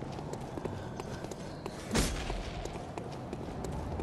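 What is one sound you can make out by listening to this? A heavy blow strikes with a sharp crack.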